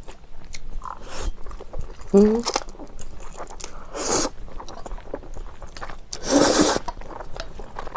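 A young woman slurps noodles loudly, close to a microphone.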